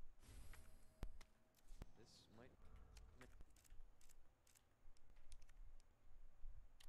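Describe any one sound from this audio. Menu clicks tick sharply several times.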